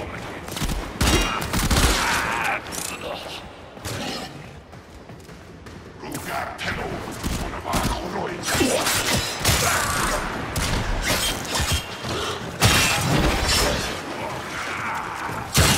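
Blades slash and swish through the air in quick strokes.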